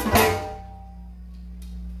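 A band strikes a loud chord that rings out.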